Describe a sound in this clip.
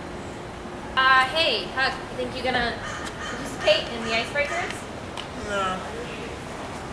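A young woman talks outdoors.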